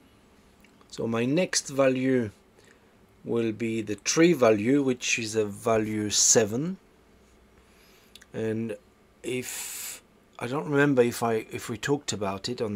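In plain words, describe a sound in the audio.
A man speaks calmly and close to the microphone.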